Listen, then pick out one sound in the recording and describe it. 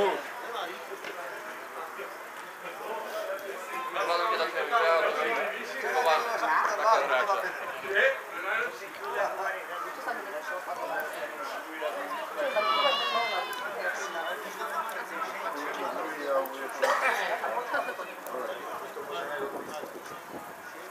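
Men in a small crowd nearby talk and call out, heard outdoors.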